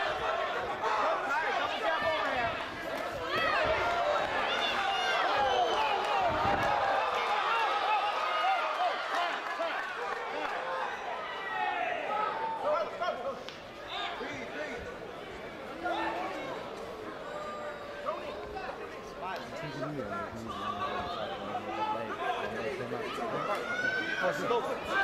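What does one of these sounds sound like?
A crowd cheers and shouts loudly around an arena.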